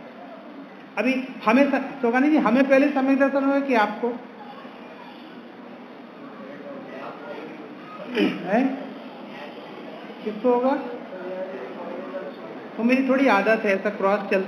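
A young man chants into a microphone, heard through a loudspeaker, in phrases with pauses.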